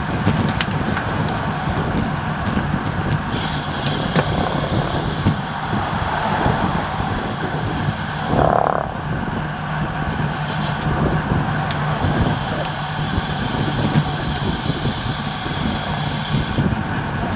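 Bicycle tyres hum steadily on a paved road.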